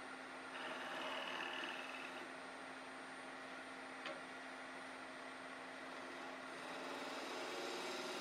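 A wood lathe hums steadily as it spins.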